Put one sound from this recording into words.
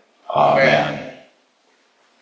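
A man speaks briefly in an echoing room.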